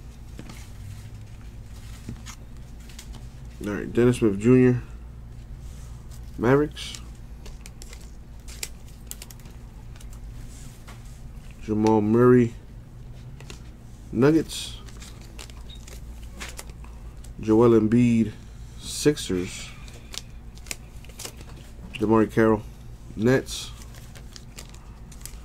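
Stiff cards slide and shuffle against each other.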